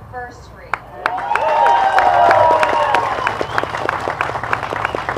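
A crowd of men and women whoops and shouts loudly.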